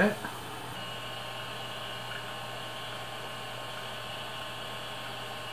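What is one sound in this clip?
A computer whirs and hums steadily.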